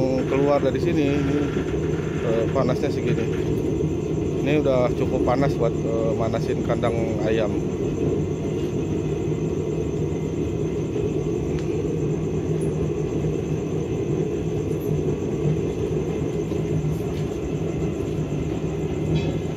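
A burner roars steadily and loudly.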